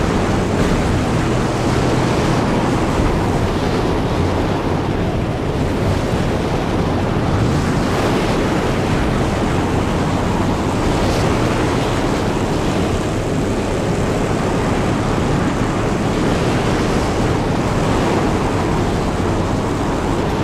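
A strong wind howls through a sandstorm.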